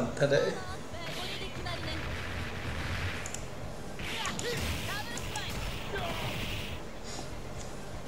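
Video game fighters trade hits with punching and blast effects.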